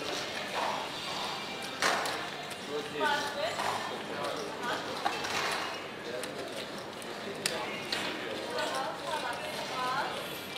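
Casino chips click and clatter as they are placed on a table.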